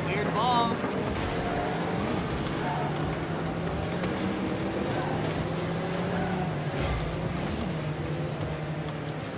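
A car engine hums steadily and revs as the car drives.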